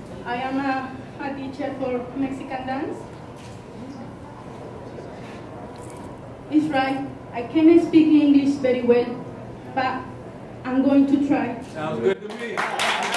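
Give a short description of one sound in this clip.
A woman speaks into a handheld microphone.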